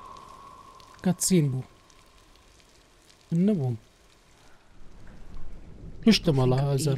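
A man speaks briefly into a close microphone, in short bursts.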